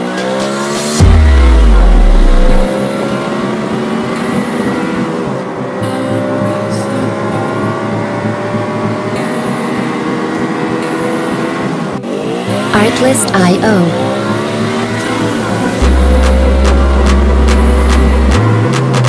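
A racing car engine roars steadily and revs up and down.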